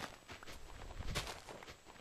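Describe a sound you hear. A dirt block is set down with a dull thud.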